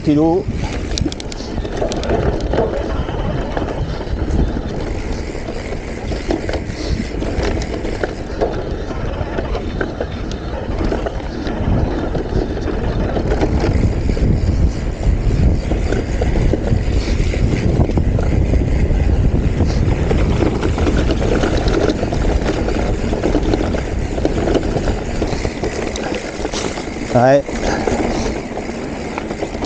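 Bicycle tyres roll and rattle over rough grass.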